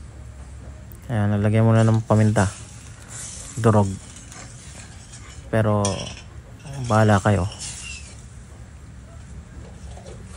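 A metal spoon scrapes and stirs in a pan.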